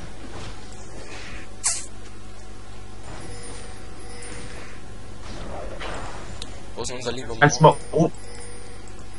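Magic spells burst and crackle in short bursts during a fight.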